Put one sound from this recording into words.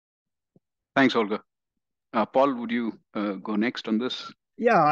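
A second man speaks with animation over a headset microphone on an online call.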